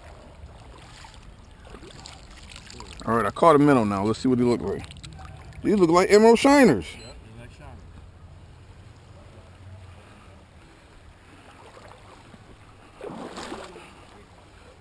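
Shallow water trickles gently over stones.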